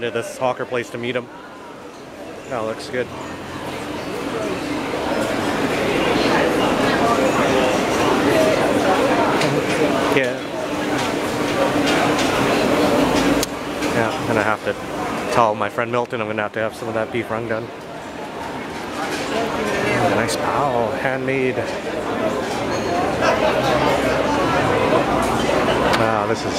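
A crowd chatters steadily all around.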